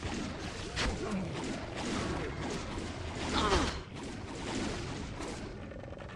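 Creatures grunt and growl in combat.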